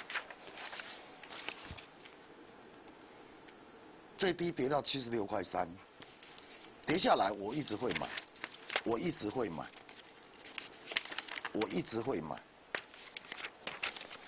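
Paper rustles as sheets are handled.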